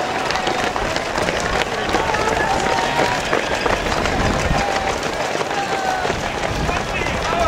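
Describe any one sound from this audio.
A crowd of spectators cheers and whistles nearby.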